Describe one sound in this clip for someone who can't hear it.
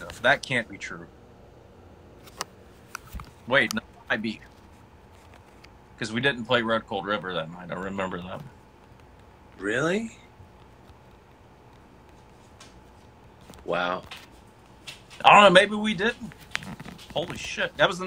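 A second man speaks over an online call.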